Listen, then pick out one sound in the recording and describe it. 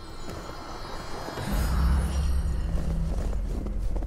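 Magic bursts crackle and whoosh.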